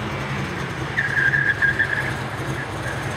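Car tyres squeal on pavement during a sharp turn.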